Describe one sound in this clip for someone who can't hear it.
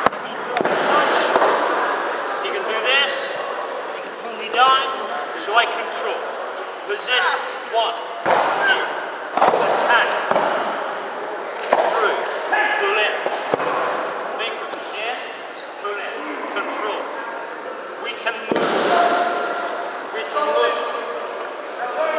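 An older man speaks calmly close by in a large echoing hall.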